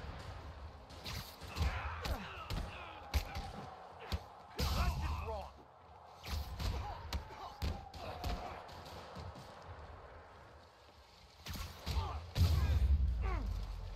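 Punches and kicks land with sharp, heavy thuds.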